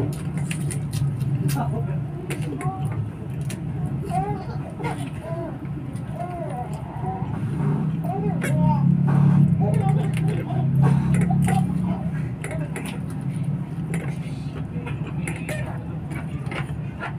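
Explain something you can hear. A middle-aged woman chews and crunches food loudly up close.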